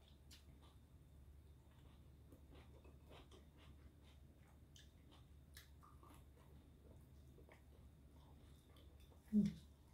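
A woman chews food with wet, smacking sounds close to a microphone.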